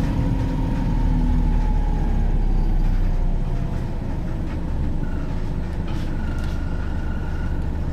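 A bus engine rumbles low and steady while the bus drives.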